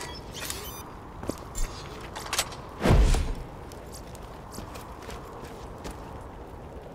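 Short electronic chimes and clicks sound as items are picked up.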